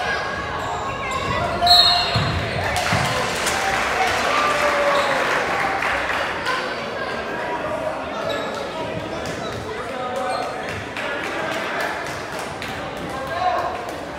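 A crowd of spectators cheers and calls out in a large echoing gym.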